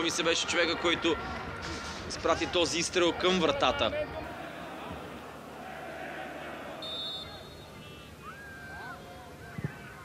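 A stadium crowd murmurs and chants in the distance.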